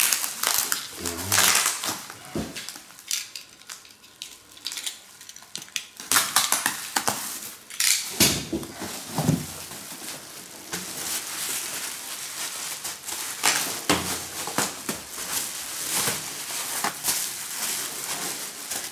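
Bubble wrap crinkles and rustles as it is handled.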